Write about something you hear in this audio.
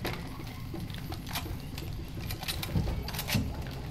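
A pistol is reloaded with metal clicks.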